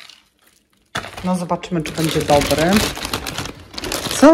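Plastic wrap crinkles under a hand.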